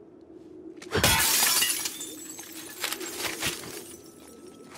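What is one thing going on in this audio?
Glass smashes and shatters loudly.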